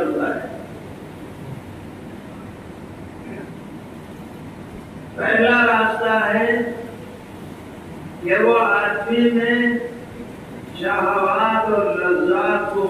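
An elderly man speaks slowly and calmly into a microphone, in phrases with long pauses.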